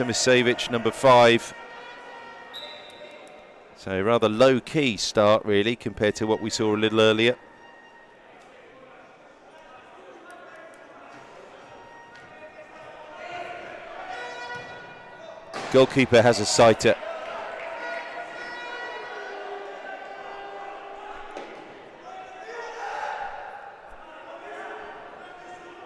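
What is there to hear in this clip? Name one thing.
A crowd murmurs and calls out in a large echoing indoor arena.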